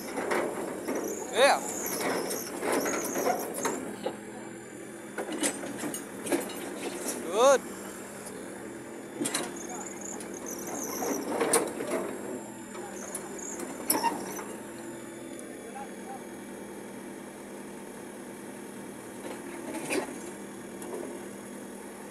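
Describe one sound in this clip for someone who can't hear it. An excavator's diesel engine rumbles steadily nearby.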